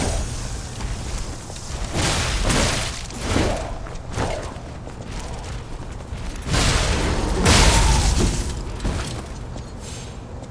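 Heavy blows and clashing metal ring out in a fight.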